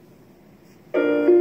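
A clarinet begins to play a note.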